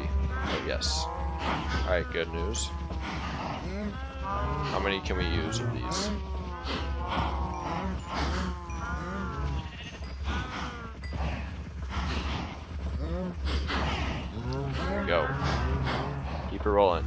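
Cows moo and low nearby.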